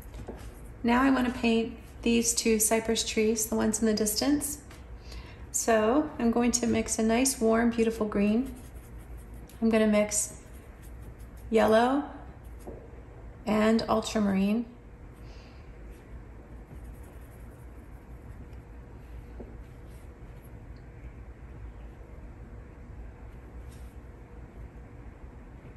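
A paintbrush swishes and dabs softly on paper.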